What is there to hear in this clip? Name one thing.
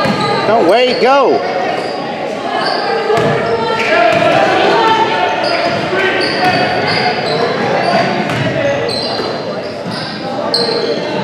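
A basketball bounces on the wooden floor.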